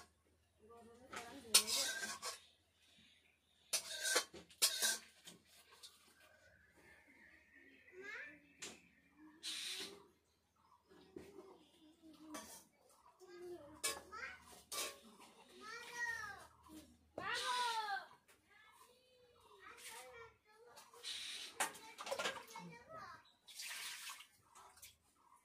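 Metal utensils clink and scrape against pots.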